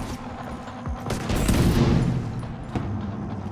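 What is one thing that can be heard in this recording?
A rifle fires a rapid burst of shots in an indoor space.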